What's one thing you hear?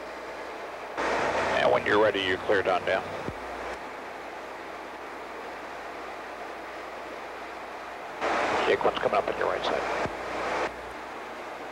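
A man speaks in short bursts over a crackly radio.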